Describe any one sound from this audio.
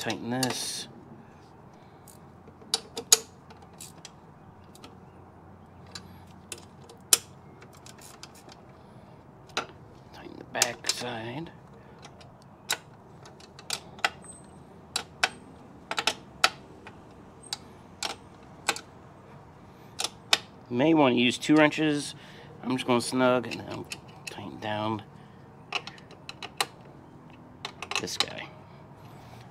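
Metal tools clink against a metal frame.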